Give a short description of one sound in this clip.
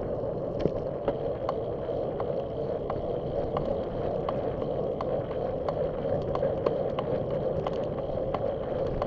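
Wind rushes steadily over the microphone outdoors.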